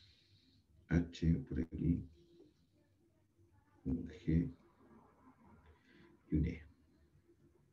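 A young man speaks calmly in short phrases over an online call.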